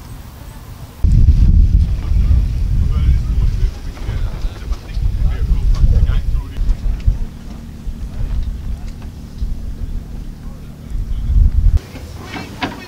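Wind buffets and rumbles loudly outdoors.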